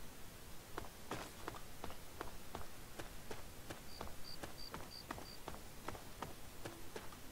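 Footsteps crunch steadily over gravel and debris.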